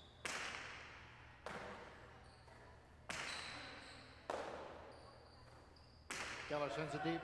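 A hard ball smacks loudly against a wall and floor, echoing through a large hall.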